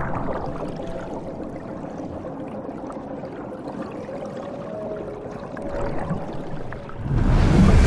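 Waves wash onto a shore and break softly.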